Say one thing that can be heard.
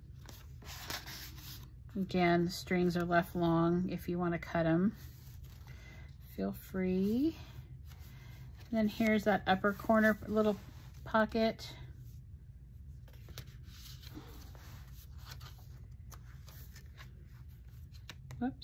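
Paper pages rustle as they are turned by hand.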